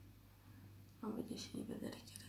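A woman speaks calmly, close to the microphone.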